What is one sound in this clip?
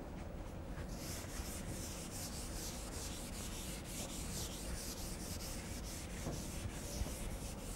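Chalk scratches on a board.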